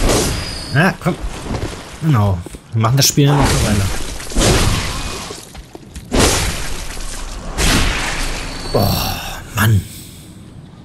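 A large beast roars and growls.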